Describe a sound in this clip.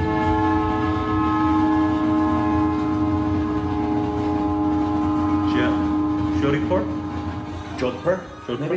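A steady organ-like chord plays through a loudspeaker.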